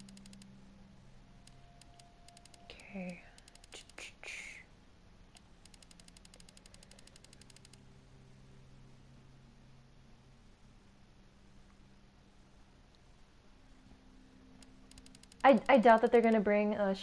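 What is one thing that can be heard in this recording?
Short electronic ticks sound rapidly as a menu scrolls.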